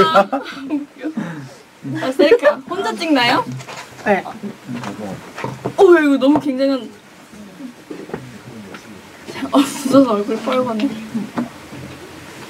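Young women laugh and talk excitedly close to microphones.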